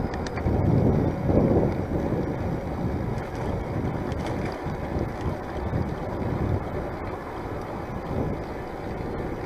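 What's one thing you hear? Bicycle tyres hum on a paved path.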